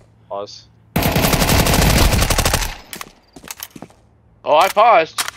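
A rifle fires a loud rapid burst of shots.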